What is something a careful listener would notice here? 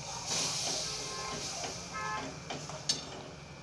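A metal spoon scrapes and stirs in a metal pan.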